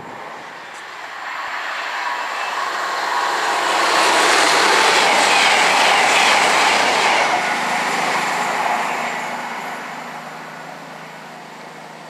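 A train rushes past at speed with a rising and fading roar.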